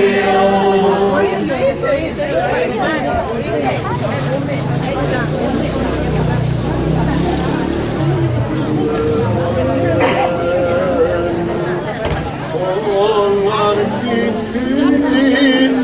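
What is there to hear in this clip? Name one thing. A group of voices sings a slow, steady chant.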